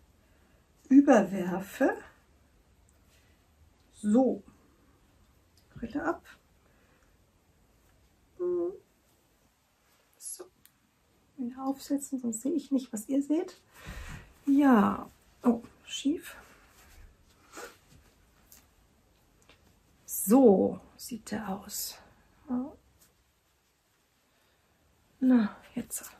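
A woman talks calmly into a close microphone, in short bursts with pauses.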